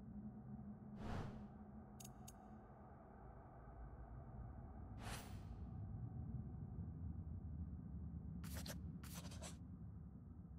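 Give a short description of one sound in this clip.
Short swishing clicks sound as pages of a book flip.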